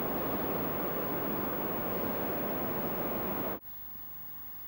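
An electric locomotive rolls over rail points as it approaches.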